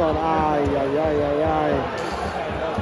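A large stadium crowd chants together in unison.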